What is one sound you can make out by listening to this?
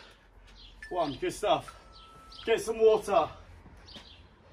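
A man speaks briefly and breathlessly nearby.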